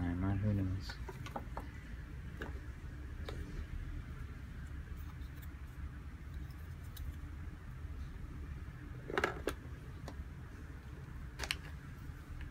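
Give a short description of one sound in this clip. Cardboard game pieces tap and rustle as a hand handles them.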